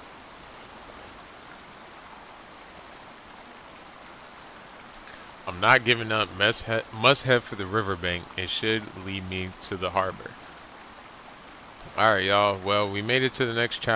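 Water pours steadily down a small waterfall.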